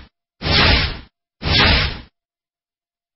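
Two loud magical whooshing effects play in quick succession.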